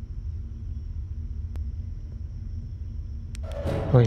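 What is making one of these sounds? A heavy metal door slides open.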